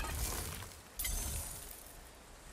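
A heavy axe slams back into a gloved hand with a thud.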